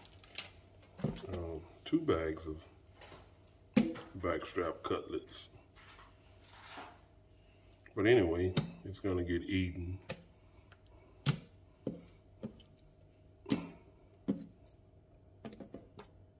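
Wet meat squelches and slaps against a metal sink.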